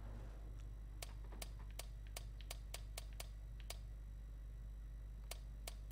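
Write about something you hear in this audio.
A safe's dial clicks softly as it turns.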